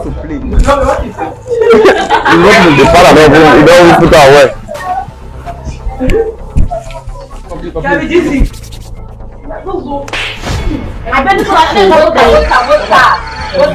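Young men shout and laugh excitedly close by.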